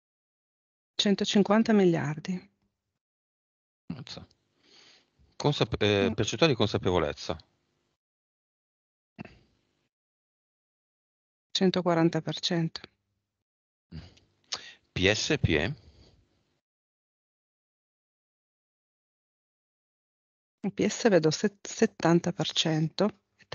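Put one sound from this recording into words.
A man speaks in short bursts with animation through a headset microphone.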